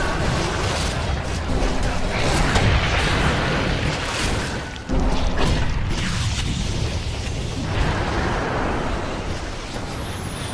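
Magic spells crackle and boom in a busy fight.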